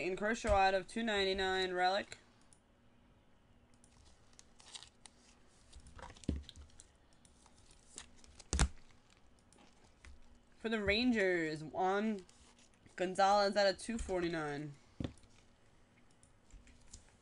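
Cardboard packs and cards rustle and tap as they are handled.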